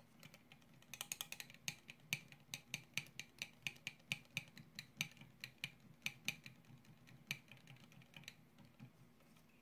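A metal spatula stirs and clinks rapidly against the inside of a glass.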